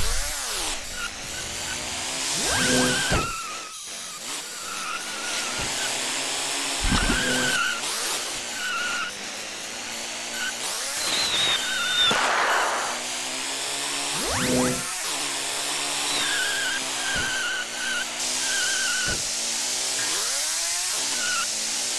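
A toy car's electric motor whines, rising and falling in pitch as it speeds up and slows down.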